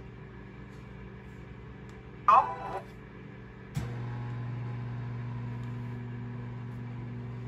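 A finger taps softly on a laptop trackpad.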